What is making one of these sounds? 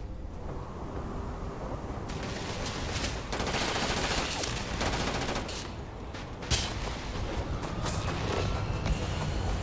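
Footsteps crunch on gravelly ground.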